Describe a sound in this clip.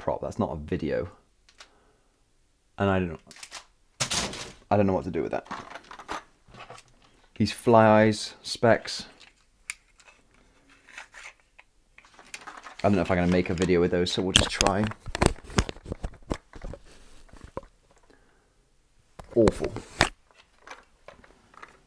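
Plastic items rattle and clatter as a man rummages through them.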